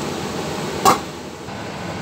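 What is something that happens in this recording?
A metal pot lid clanks as it is lifted off.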